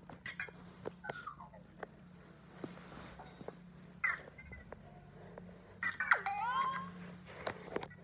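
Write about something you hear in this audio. A small toy robot chirps and beeps in short electronic tones.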